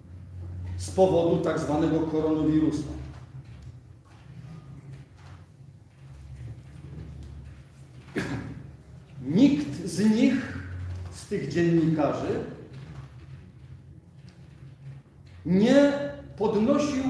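A middle-aged man speaks in short bursts, standing a few steps away in a room with some echo.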